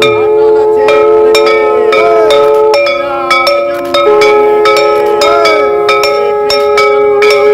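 Hand cymbals clash in a quick, steady rhythm.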